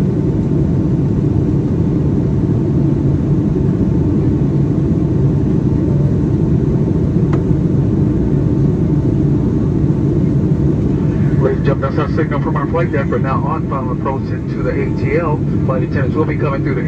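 A jet engine roars steadily inside an airplane cabin.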